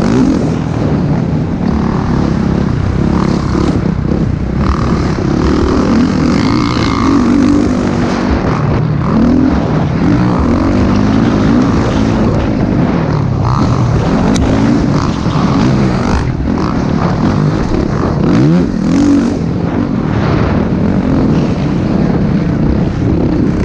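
A dirt bike engine roars close by, revving up and down as the rider shifts gears.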